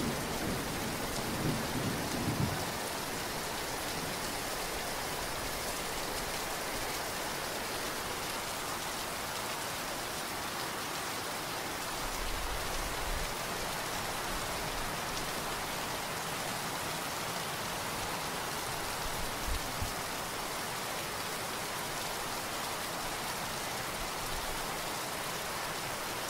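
Motorbikes and cars pass on a wet road.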